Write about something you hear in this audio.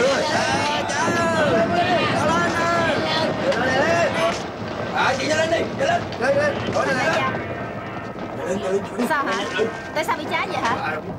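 Men and women in a crowd shout and scream in panic.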